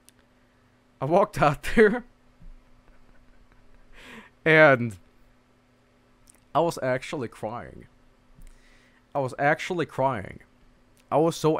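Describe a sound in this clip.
A man speaks calmly and close to a headset microphone, in short bursts with pauses.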